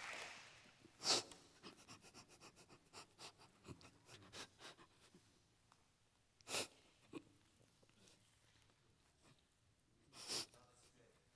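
A man sobs and sniffles into a microphone.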